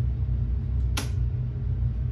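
A throttle lever clicks once.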